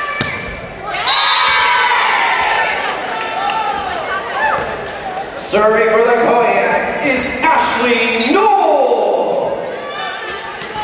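Young women shout and cheer in a large echoing gym.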